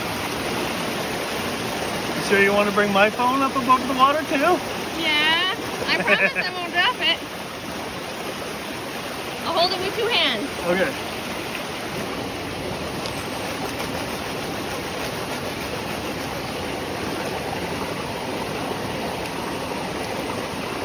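A stream rushes steadily over rocks outdoors.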